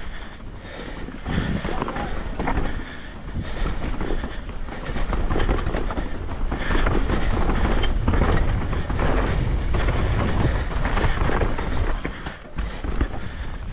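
Bike tyres crunch and rattle over a dirt trail.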